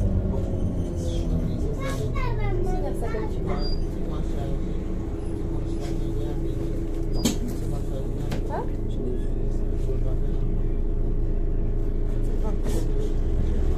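A vehicle's engine hums low and steady, heard from inside.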